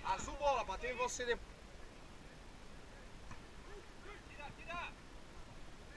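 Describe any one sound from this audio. Men shout out loud across an outdoor pitch.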